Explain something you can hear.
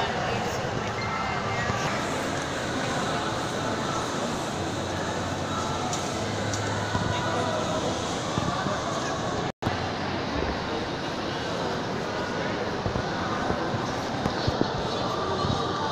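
A crowd of people murmurs in a large echoing hall.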